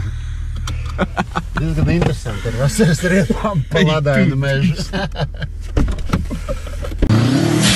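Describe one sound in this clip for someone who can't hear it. A young man laughs and talks with animation close by.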